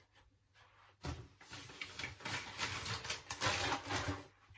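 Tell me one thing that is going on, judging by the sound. Plastic wrapping crinkles and rustles loudly as it is handled.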